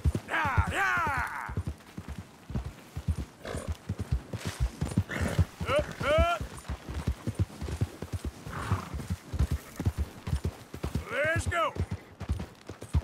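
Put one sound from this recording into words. Horse hooves pound rapidly on grassy ground at a gallop.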